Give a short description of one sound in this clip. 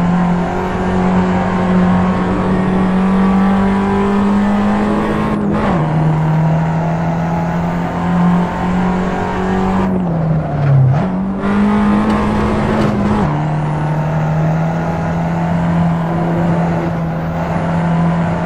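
A small four-cylinder hatchback engine drones under load at speed, dropping in pitch with each gear change.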